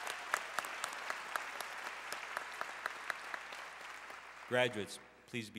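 A large crowd applauds in a big echoing hall, and the applause slowly fades.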